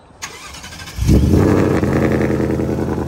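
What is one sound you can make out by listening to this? A car engine starts with a loud roar.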